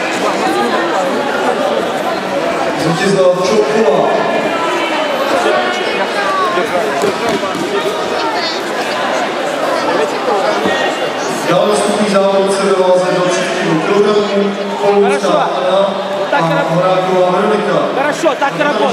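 A crowd chatters and calls out throughout a large echoing hall.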